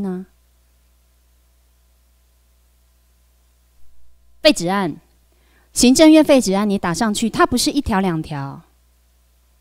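A young woman speaks calmly into a microphone over loudspeakers, in short phrases.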